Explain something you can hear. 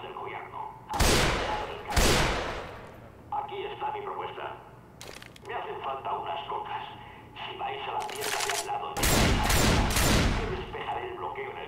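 Gunshots boom loudly, one at a time, with a ringing tail.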